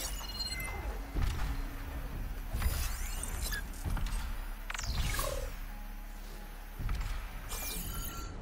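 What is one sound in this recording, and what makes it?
A bowstring creaks as it is drawn and held.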